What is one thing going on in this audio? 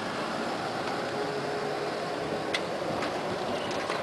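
A tram rolls along the rails and pulls away.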